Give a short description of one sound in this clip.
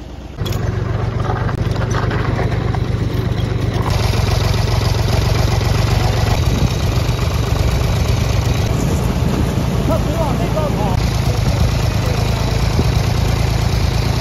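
A tractor engine chugs loudly and steadily up close.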